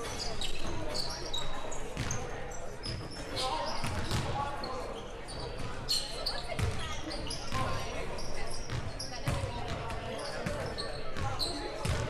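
Spectators murmur and call out from the stands.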